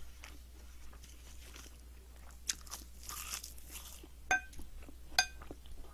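Crisp roasted seaweed crackles as it is torn and bitten.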